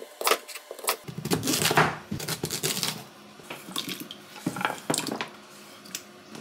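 Potato pieces splash into a glass bowl of water.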